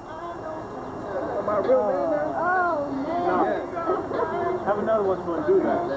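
A man talks and laughs close by.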